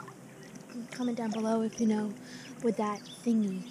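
A young girl talks calmly close to the microphone.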